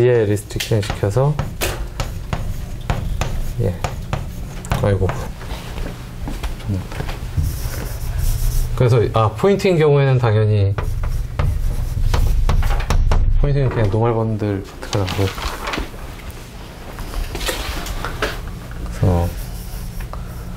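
A man lectures in a calm voice, heard through a microphone in a room with some echo.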